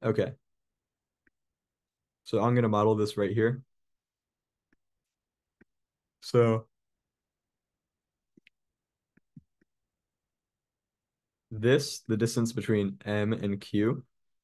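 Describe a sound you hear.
A man speaks calmly into a microphone, explaining in short bursts with pauses.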